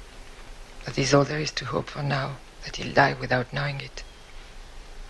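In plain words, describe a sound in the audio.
A woman speaks quietly and tensely nearby.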